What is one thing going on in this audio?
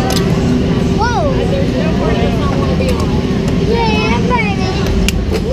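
A young boy laughs and shouts close by.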